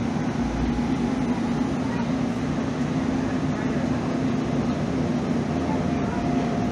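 A train's motor hums steadily.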